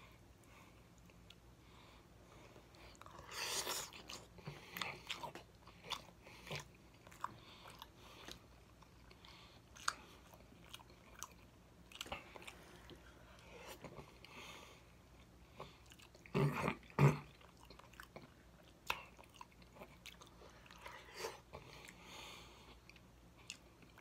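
A man's fingers pick through soft, saucy food with wet squelches.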